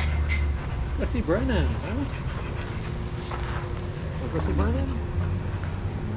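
A dog whines in high, wavering cries.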